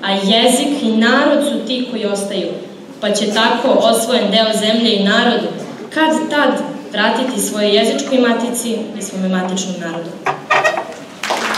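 Young women speak in turn through a microphone.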